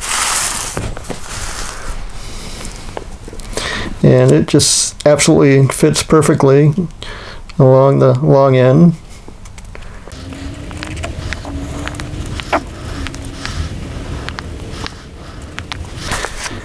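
A marker squeaks and scratches as it traces around paper on wood.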